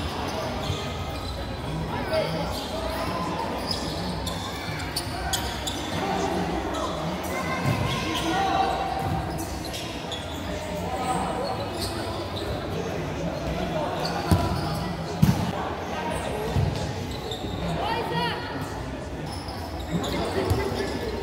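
A futsal ball thumps off players' feet in an echoing indoor hall.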